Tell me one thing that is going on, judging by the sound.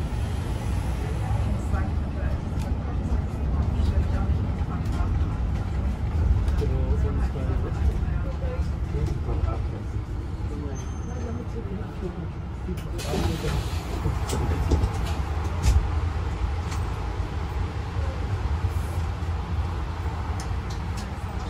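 The bus rattles and clicks over the road.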